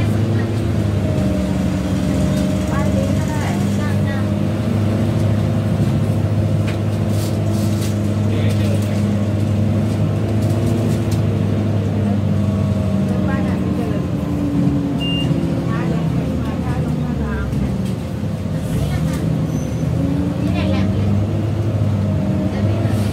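The bus rattles and creaks as it rolls along a street.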